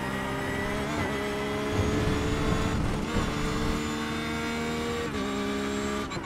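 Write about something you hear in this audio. A racing car engine briefly drops in pitch between gear shifts, then climbs again.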